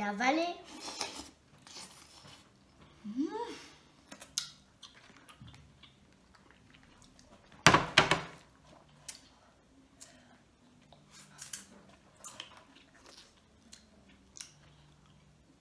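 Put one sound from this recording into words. Food crunches and smacks while being eaten.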